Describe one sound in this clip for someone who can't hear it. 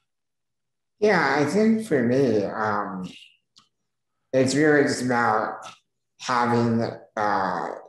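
A young man speaks calmly into a close microphone, in short phrases with pauses.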